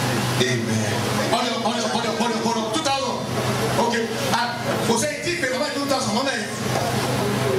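A man speaks with animation through a loudspeaker in a hall.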